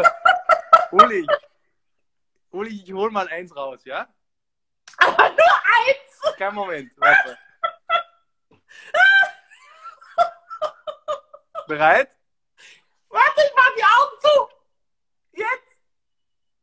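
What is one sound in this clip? A young woman laughs loudly over an online call.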